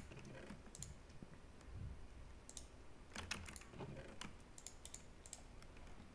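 Items click softly as they are moved around.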